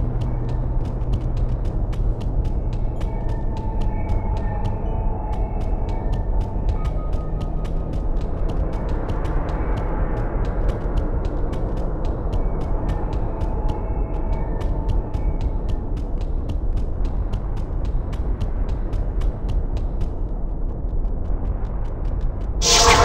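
Quick footsteps patter steadily on stone.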